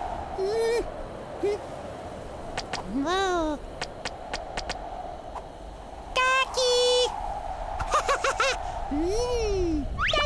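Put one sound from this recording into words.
A small cartoon chick peeps and squeaks in high, sliding chirps.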